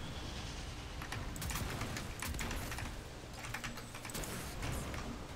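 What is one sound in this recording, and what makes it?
Explosions crackle and boom in a fight.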